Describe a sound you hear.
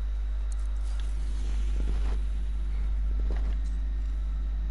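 Soft game menu sounds whoosh and click.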